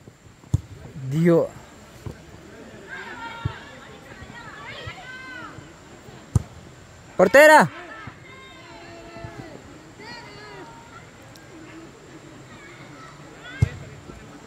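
Young women shout and call out to each other outdoors.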